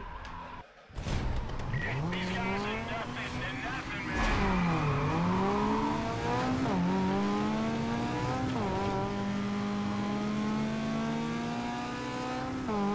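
Race car engines roar and rev as they speed off.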